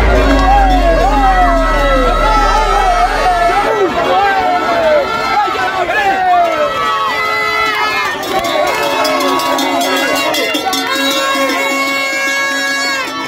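A crowd of young men and women cheers and shouts loudly close by.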